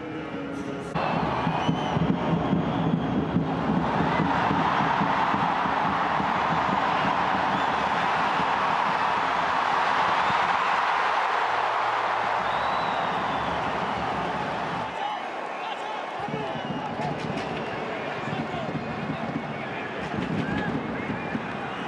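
A large stadium crowd roars and cheers loudly, swelling and then slowly easing off.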